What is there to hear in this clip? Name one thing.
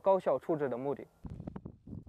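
A young man speaks calmly and clearly into a microphone.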